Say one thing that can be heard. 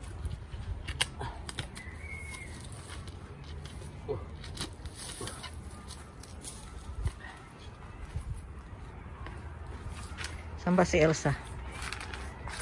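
Loppers snip through tree roots with sharp cracks.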